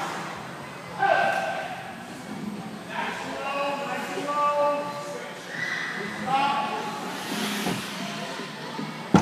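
Young children call out with high voices in a large echoing hall.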